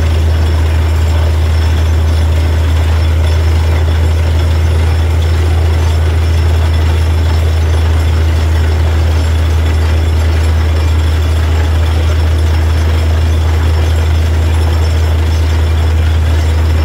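A rotating drill grinds into the ground.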